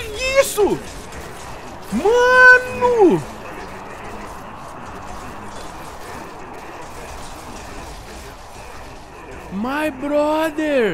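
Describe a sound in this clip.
A young man exclaims loudly in long drawn-out cries close to a microphone.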